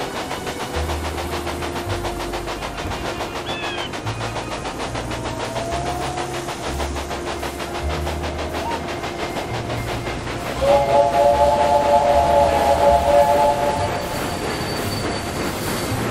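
Train wheels rumble and clatter over rail joints.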